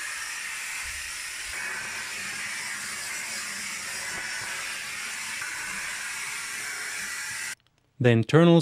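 A vacuum cleaner hums and sucks steadily close by.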